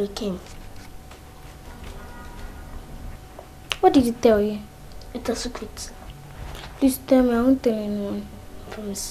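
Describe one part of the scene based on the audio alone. A young girl speaks quietly nearby.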